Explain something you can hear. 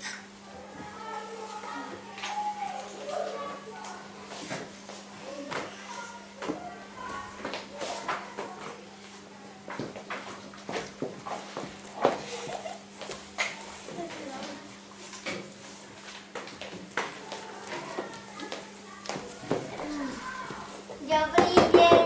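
Children talk quietly nearby.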